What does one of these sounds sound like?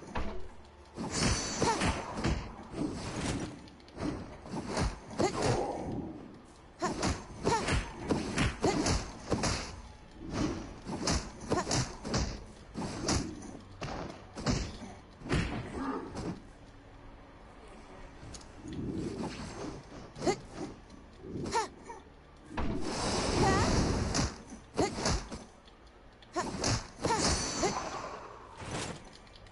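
A young woman talks into a microphone.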